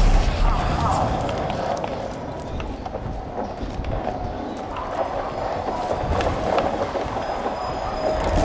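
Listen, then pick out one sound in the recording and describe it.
Footsteps crunch on the ground.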